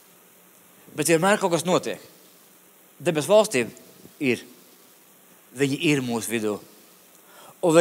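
A middle-aged man speaks through a microphone in short, measured phrases with pauses.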